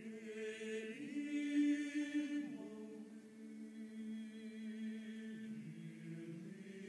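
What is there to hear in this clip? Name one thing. A mixed choir of men and women sings slowly and softly in harmony, in a large echoing hall.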